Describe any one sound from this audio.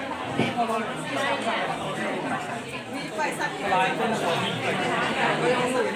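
A crowd of women and men chatter loudly all around.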